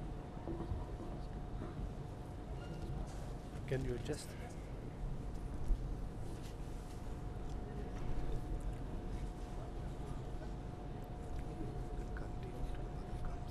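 An audience murmurs quietly in a large echoing hall.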